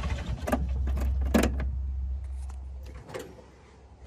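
A machine's engine idles with a low steady rumble and then shuts off.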